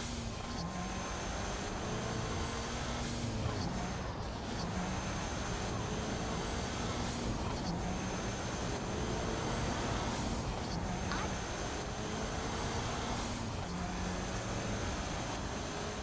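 A car engine hums steadily while driving fast.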